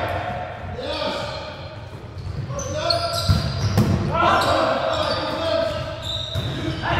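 Young men call out and shout to each other during play.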